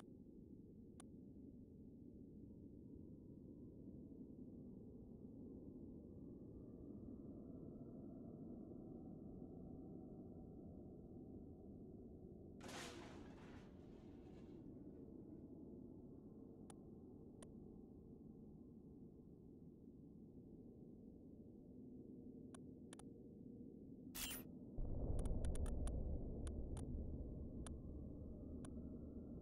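Short soft clicks sound now and then as menu items are selected.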